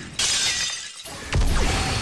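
A video game energy beam blasts with a roaring rush.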